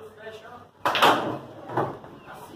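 Billiard balls knock together and roll.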